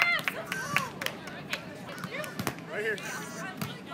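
A volleyball is struck with a dull slap.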